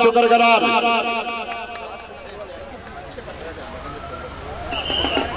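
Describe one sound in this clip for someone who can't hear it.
Several men talk and murmur nearby outdoors.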